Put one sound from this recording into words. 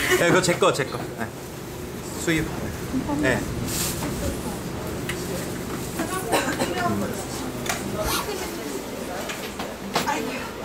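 A young man talks casually close by.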